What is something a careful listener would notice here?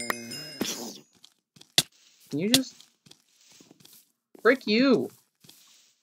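A sword strikes with short, sharp hits.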